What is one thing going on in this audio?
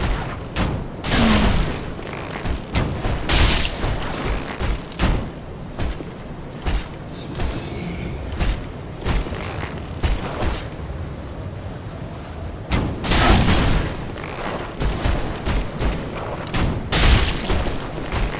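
A weapon swings and strikes with sharp metallic hits.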